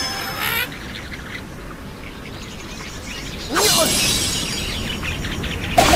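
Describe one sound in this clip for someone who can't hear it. A slingshot stretches and snaps as a bird is launched.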